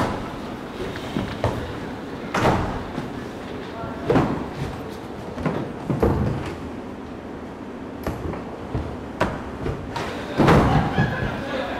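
Footsteps thump on a wooden floor.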